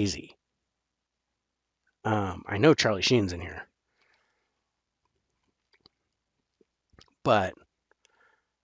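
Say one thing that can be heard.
A middle-aged man talks with animation into a headset microphone.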